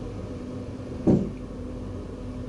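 A tram's door thuds shut.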